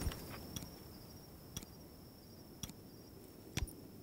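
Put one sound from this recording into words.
Soft clicks sound as items are picked in a menu.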